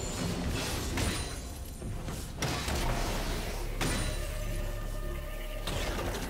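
Video game spell effects burst and clash in a fast fight.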